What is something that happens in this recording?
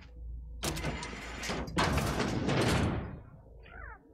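A heavy metal door grinds and hisses open.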